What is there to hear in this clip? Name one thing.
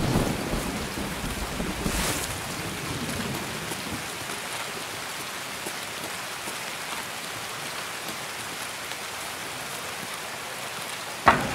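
Footsteps crunch steadily on gravel and grass.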